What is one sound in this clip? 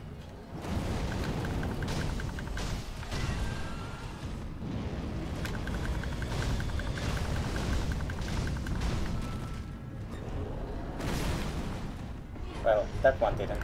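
Flames roar and crackle around a huge creature.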